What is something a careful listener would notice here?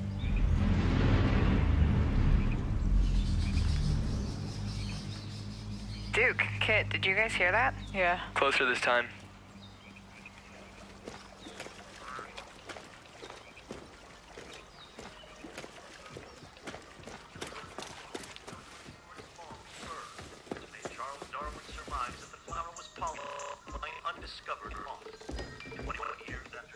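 Footsteps crunch steadily on a leafy forest floor.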